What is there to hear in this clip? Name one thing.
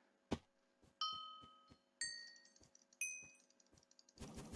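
Short chiming beeps count down, each one higher in pitch.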